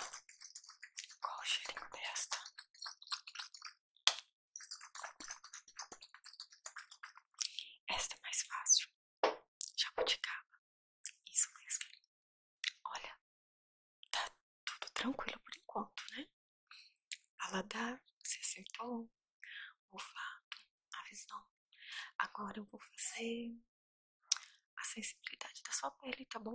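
A young woman whispers softly and close into a microphone.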